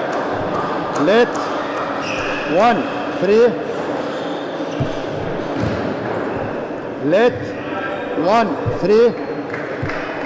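Sports shoes squeak sharply on the floor.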